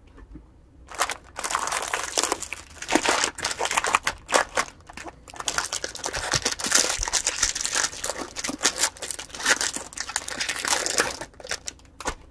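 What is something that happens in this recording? Foil wrappers crinkle and rustle as packs are torn open.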